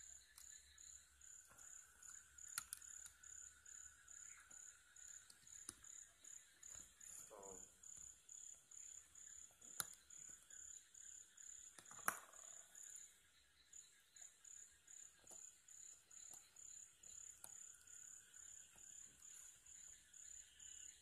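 Plastic parts click and snap as a device case is handled.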